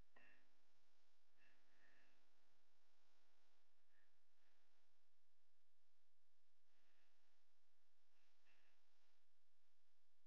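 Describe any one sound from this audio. Plastic sheeting crinkles under a gloved hand.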